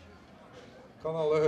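A man speaks loudly to a small crowd outdoors.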